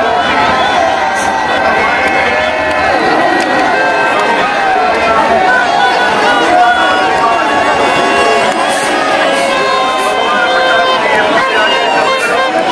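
A large crowd of men shouts and cheers close by.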